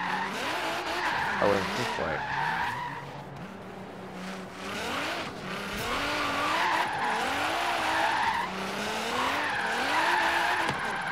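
Tyres screech while skidding on asphalt.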